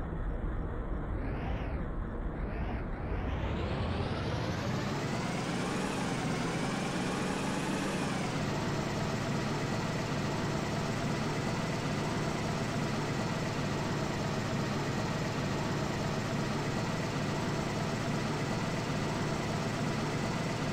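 A truck engine rumbles steadily as the truck drives along.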